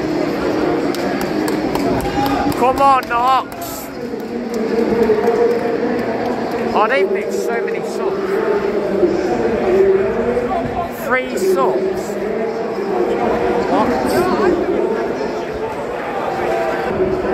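A large crowd murmurs and chants across an open stadium.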